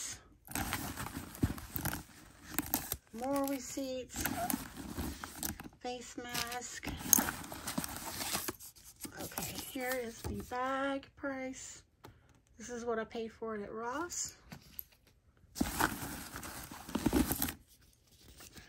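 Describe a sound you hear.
A bag's lining rustles and crinkles as a hand rummages inside.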